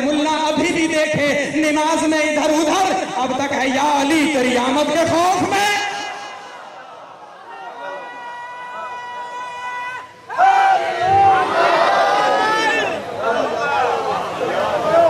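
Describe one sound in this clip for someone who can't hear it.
A young man recites with passion through a microphone, his voice carried over loudspeakers.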